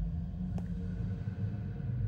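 Lava bubbles and pops nearby.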